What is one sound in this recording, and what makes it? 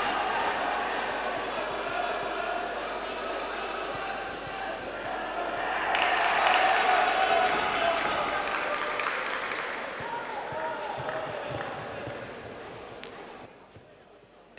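A crowd cheers and murmurs in a large echoing hall.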